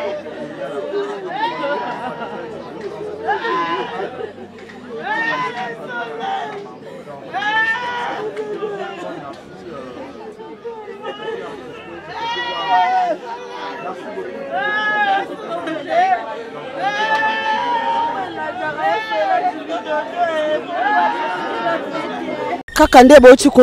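Several women wail and sing mournfully together.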